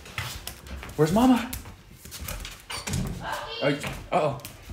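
A small dog whines loudly and excitedly.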